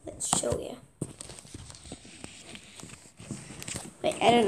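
Handling noise rustles and bumps against the microphone.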